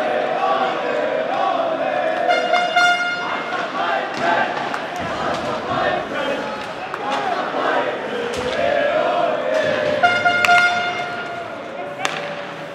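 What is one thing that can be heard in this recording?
A crowd of spectators chatters and calls out in a large echoing arena.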